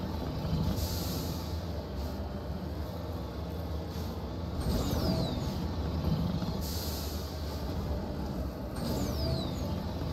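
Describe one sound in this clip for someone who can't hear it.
Thrusters hiss in short bursts.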